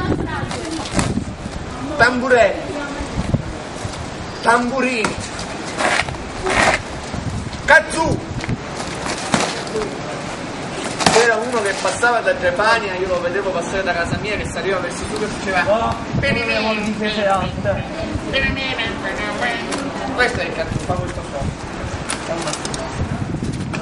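Several young men talk and call out loudly close by.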